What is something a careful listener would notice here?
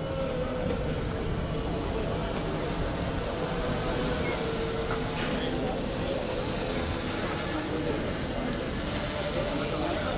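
A crowd of people murmurs nearby outdoors.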